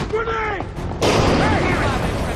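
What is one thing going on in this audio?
Gunshots ring out in a burst.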